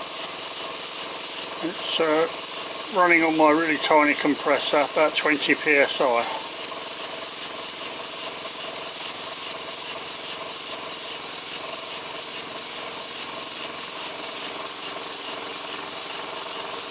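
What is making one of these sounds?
A small model engine chuffs rapidly and steadily.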